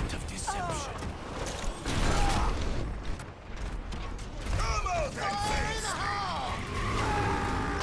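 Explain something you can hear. Video game gunfire rattles in rapid bursts.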